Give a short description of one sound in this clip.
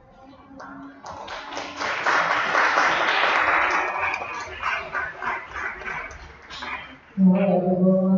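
An audience laughs and applauds in a large room.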